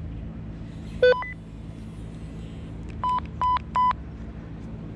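A handheld electronic device beeps several times.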